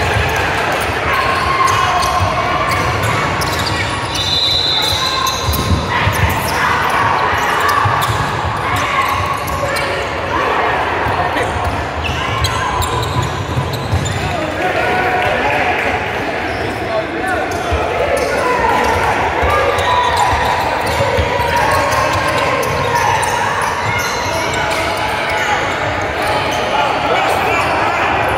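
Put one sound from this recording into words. Young players and spectators shout and call out across the echoing gym.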